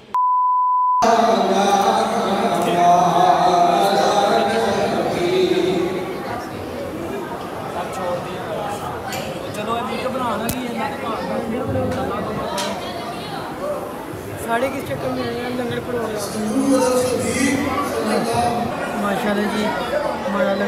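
A crowd of young men chatters and talks in a large echoing hall.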